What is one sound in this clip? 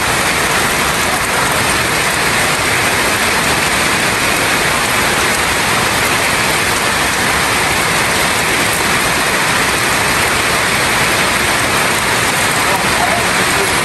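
Wind gusts through trees.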